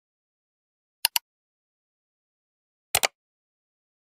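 A mouse button clicks.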